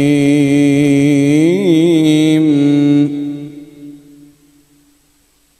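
A young man chants a long sustained melodic phrase into a microphone, trailing off with an echo.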